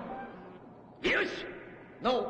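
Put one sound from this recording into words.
A gruff man says a single word with satisfaction.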